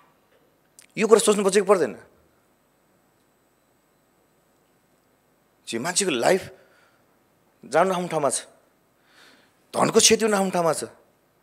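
A man speaks calmly through a microphone, with pauses between phrases.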